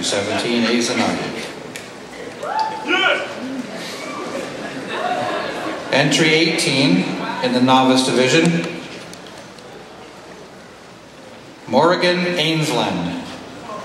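A man speaks with animation into a microphone, heard over loudspeakers in a large hall.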